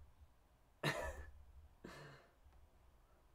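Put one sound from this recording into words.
A young man laughs briefly close to a microphone.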